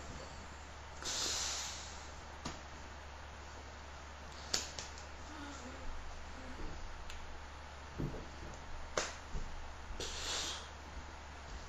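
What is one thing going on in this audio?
Hands rustle against clothing close by.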